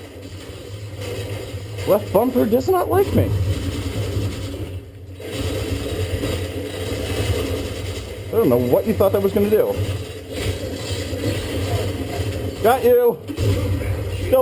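Video game sounds play from a television's speakers.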